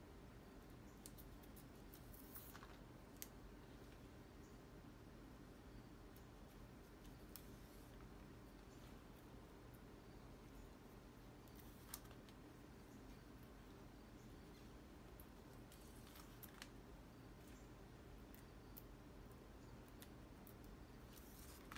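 Dry peppers rustle and tap against paper.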